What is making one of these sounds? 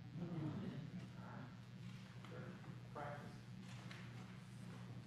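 A man speaks softly and calmly nearby.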